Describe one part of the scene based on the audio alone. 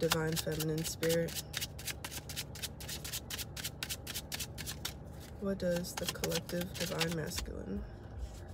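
Plastic wrapping crinkles in a young woman's hands.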